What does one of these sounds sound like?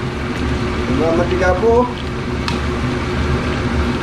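Sauce pours into a sizzling pan.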